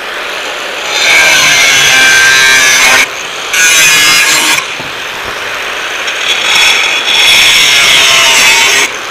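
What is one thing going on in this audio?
An angle grinder whines loudly as it cuts through metal, in bursts with short pauses.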